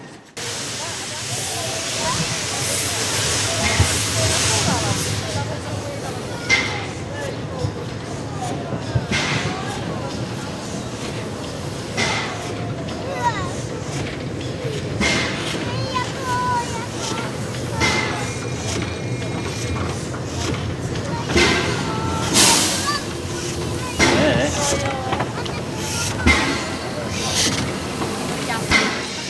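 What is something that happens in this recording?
Steel wheels squeal and clank on the rails.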